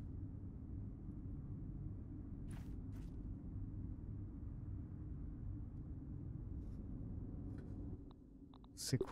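A low, steady rumbling drone hums in the background.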